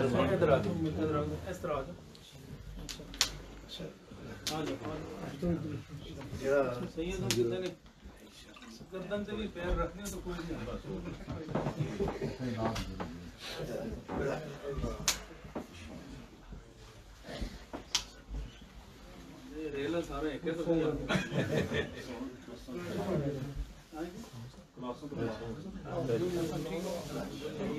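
Several men talk nearby at once.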